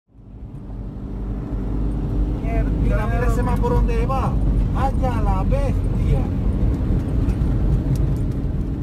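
A car engine hums and tyres roll steadily on a road.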